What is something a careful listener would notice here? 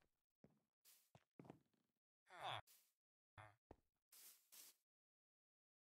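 Footsteps crunch on grass.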